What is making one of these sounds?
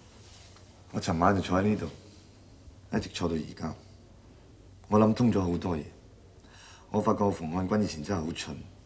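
A man speaks calmly and wearily nearby.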